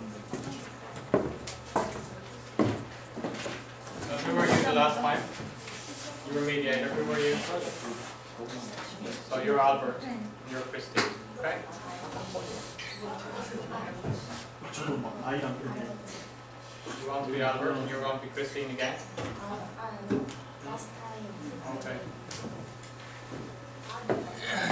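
A man speaks calmly in a room with some echo.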